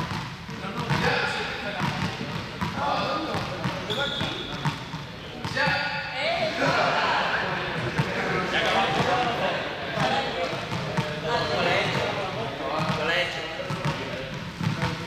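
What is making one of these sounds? Young people talk and call out, echoing in a large hall.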